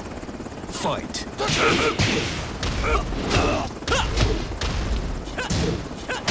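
Punches and kicks land with heavy, sharp thuds.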